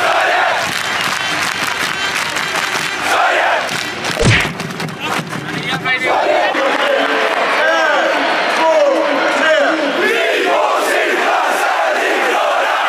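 A huge stadium crowd cheers and sings loudly all around.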